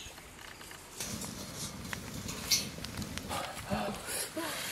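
A wood fire crackles close by.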